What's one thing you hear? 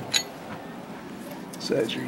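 A metal wrench clinks against a metal housing.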